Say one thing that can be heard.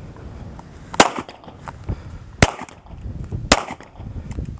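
A pistol fires loud, sharp shots outdoors.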